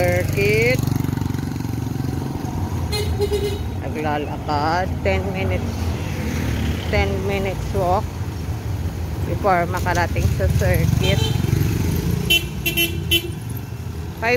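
A motorcycle engine hums as it rides away.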